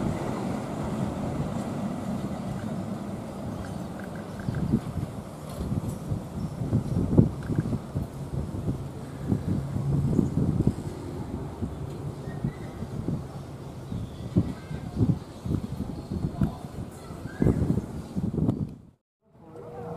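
A passenger train rumbles slowly along the tracks.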